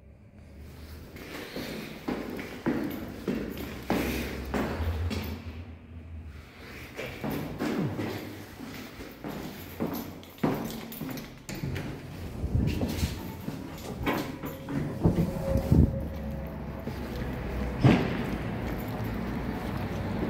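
Footsteps tap and echo in a stairwell.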